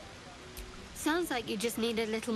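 A young woman speaks with a teasing tone, close and clear.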